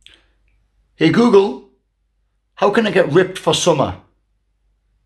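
A man speaks close up, in two short bursts.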